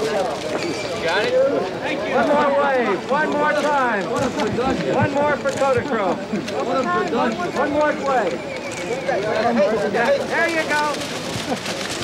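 A group of young children shout and chatter excitedly outdoors.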